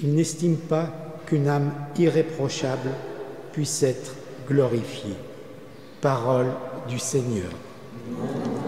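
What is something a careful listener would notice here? An elderly man reads out through a microphone in a large echoing hall.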